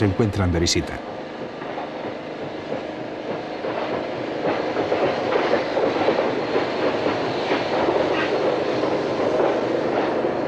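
A steam train rumbles and chugs slowly along the tracks, growing closer.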